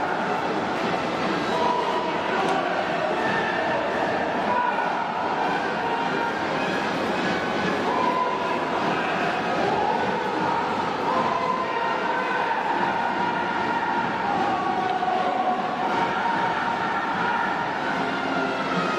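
A large crowd cheers and chants.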